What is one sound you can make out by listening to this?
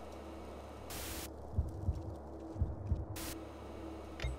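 Television static hisses in a short burst.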